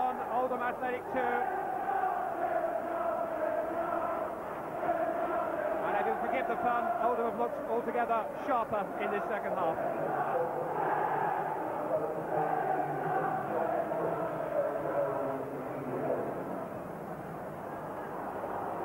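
A large stadium crowd sings and chants loudly throughout.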